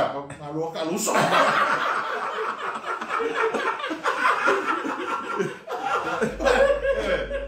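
Two middle-aged men laugh heartily close by.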